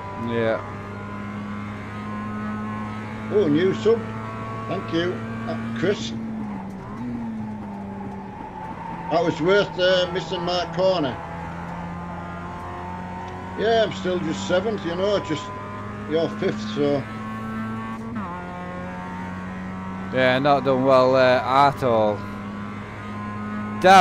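A racing car engine drones steadily at high revs.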